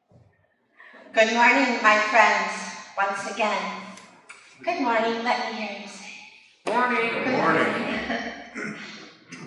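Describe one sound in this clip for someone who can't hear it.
A woman speaks warmly into a microphone in a softly echoing hall.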